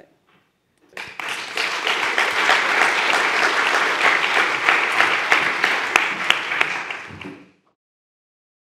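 An audience applauds in a large hall, then the applause fades.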